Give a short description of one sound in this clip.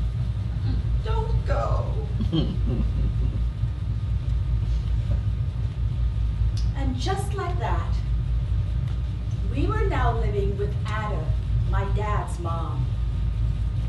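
A young woman speaks expressively in bursts, heard from a distance.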